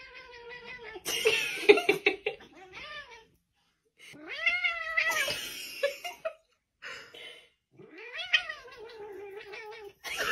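A cat yowls loudly and repeatedly, close by.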